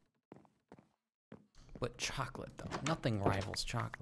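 A wooden door clicks open.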